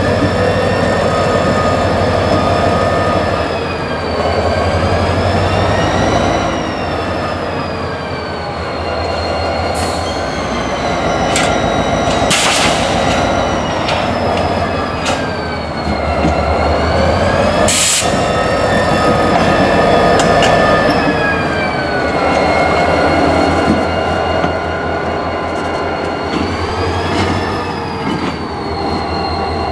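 A locomotive horn blares in long, wavering blasts.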